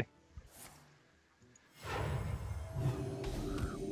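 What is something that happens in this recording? A fiery blast sound effect bursts out.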